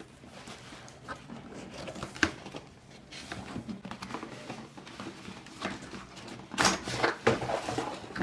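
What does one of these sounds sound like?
Bubble wrap crinkles and rustles as hands move it.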